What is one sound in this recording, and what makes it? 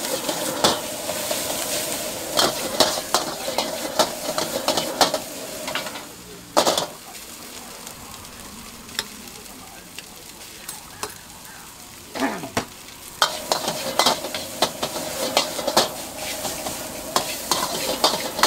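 Rice sizzles and crackles in a hot wok.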